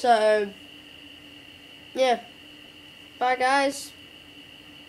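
A young boy speaks in short bursts close to a microphone.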